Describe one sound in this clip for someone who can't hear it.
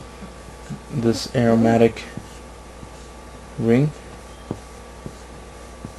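A marker squeaks and scratches across paper.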